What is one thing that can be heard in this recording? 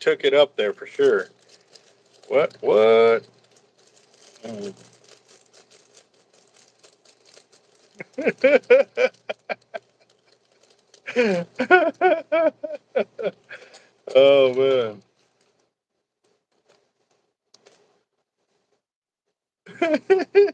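A plastic bag crinkles in a man's hands.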